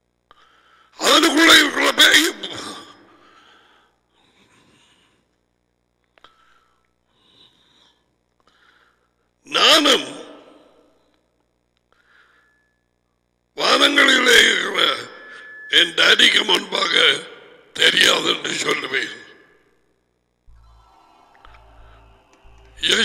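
A middle-aged man speaks with animation into a close headset microphone.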